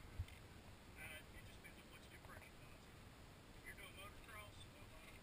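Men talk faintly at a distance outdoors.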